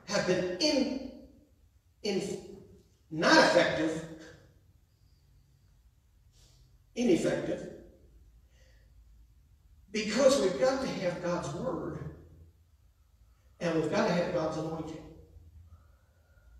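A man preaches through a microphone in bursts, his voice echoing in a large hall.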